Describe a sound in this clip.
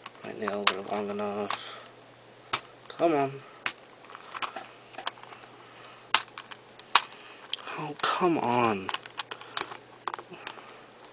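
A puzzle cube's layers click and clack as fingers twist them.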